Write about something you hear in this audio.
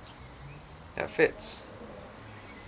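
Small metal parts click and clink against each other close by.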